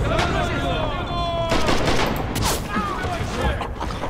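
Rifle shots crack nearby.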